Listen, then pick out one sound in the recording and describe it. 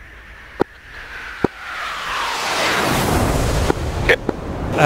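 A jet flies past with a swelling roar.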